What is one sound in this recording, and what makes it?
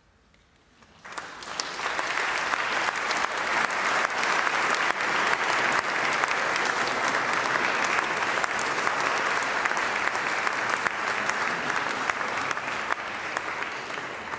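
An audience applauds loudly in a large echoing hall.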